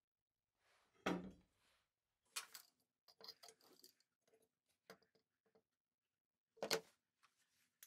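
Metal parts click and rattle as a steel bar is handled and clamped.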